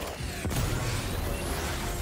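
Electricity crackles and zaps sharply.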